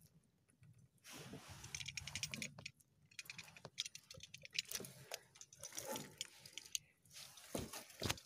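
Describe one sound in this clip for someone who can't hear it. A nylon fishing net rustles and scrapes as hands pull it.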